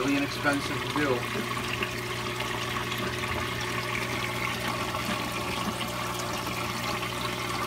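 A pump hums steadily.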